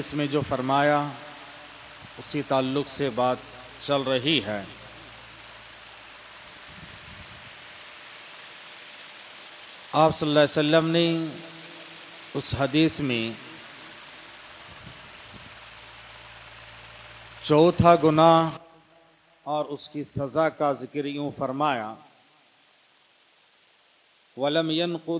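A middle-aged man speaks slowly and deliberately into a microphone, with pauses between phrases.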